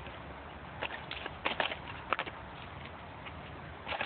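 Footsteps scuff on asphalt close by.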